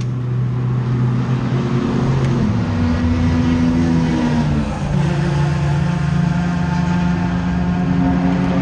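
A race car engine idles loudly with a rough, shifting hum, heard from inside the car.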